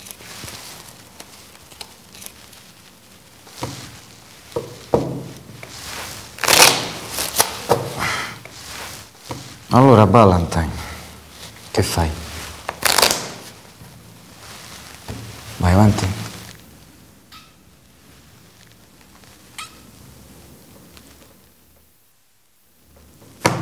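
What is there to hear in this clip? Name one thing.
Playing cards riffle and snap as a deck is shuffled.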